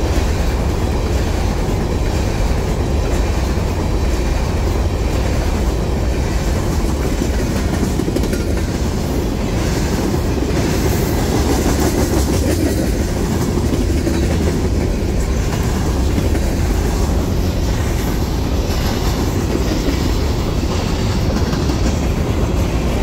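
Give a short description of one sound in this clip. Steel wheels clack over rail joints as freight cars pass.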